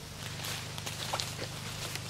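Footsteps rustle through dry leaves.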